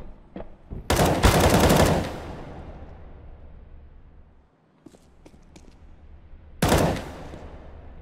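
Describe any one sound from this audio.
A rifle fires loud bursts of shots that echo.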